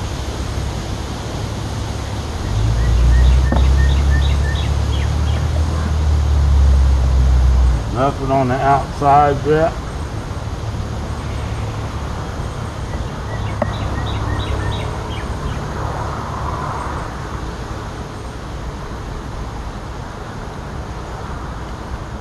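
A bee smoker puffs smoke.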